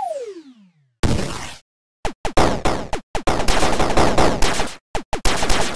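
A retro video game explosion bursts with a noisy crash.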